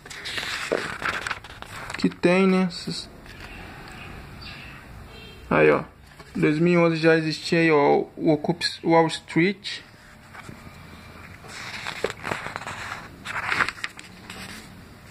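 Glossy magazine pages rustle and flip as they are turned.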